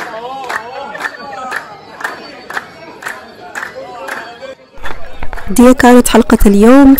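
A group of men sing and chant loudly.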